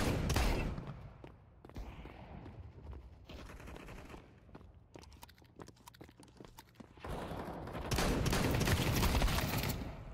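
Gunshots blast in quick bursts.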